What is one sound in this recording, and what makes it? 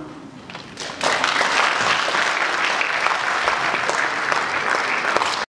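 An audience claps and applauds loudly.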